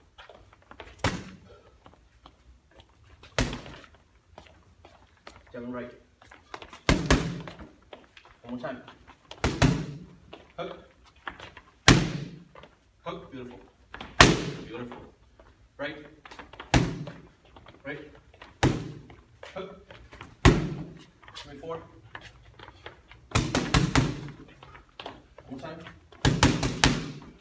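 Boxing gloves smack against focus mitts in quick combinations.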